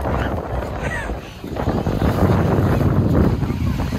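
A man wades out of the water with splashing steps.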